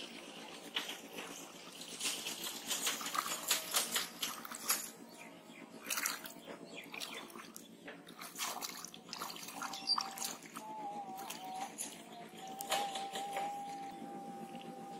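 Water splashes around a person's legs.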